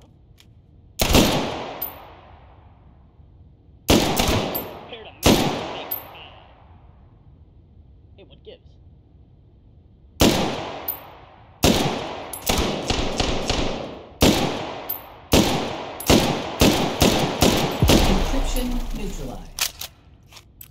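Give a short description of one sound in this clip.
A rifle fires loud shots that echo and ring out.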